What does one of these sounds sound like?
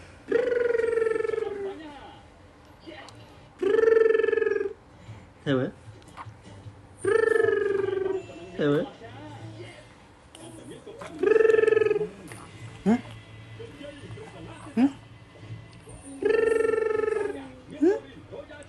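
A man calls out nearby in long, playful, sing-song phrases.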